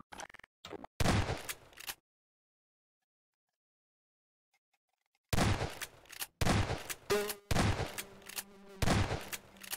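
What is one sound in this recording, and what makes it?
A shotgun fires loud single blasts.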